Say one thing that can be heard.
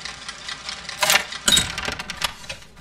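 A wooden chest lid creaks open.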